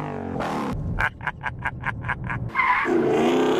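A man laughs loudly and gleefully up close.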